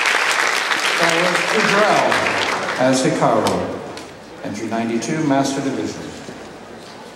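A man speaks calmly into a microphone, heard through loudspeakers in a hall.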